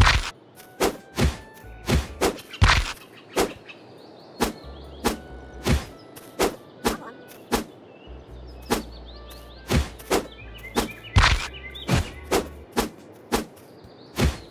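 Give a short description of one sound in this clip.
Sharp game sword strikes land in quick, uneven succession.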